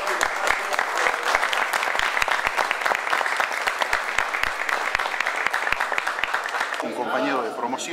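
A group of people applauds steadily.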